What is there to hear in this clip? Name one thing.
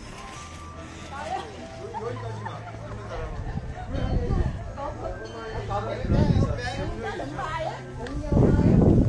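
Several adults chat nearby in a crowd.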